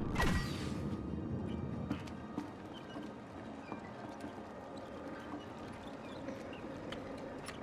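Skates grind along a metal rail with a steady scraping hiss.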